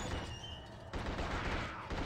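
Gunshots crack from a video game.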